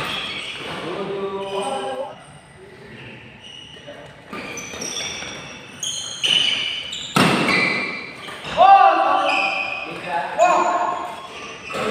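Young men shout and call out during play.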